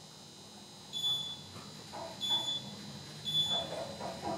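An elevator beeps softly as it passes each floor.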